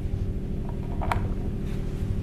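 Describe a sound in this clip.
A plastic plate slides into a holder with a light click.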